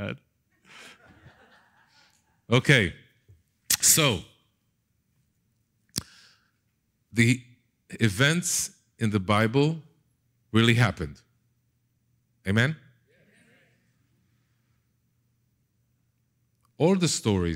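A man speaks with animation through a headset microphone, in short bursts with pauses.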